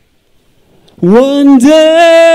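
A young man sings loudly into a microphone over loudspeakers.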